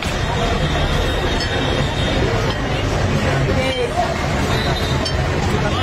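Glasses clink together.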